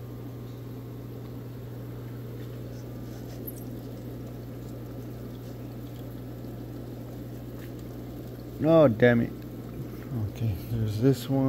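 Water bubbles and churns in tanks.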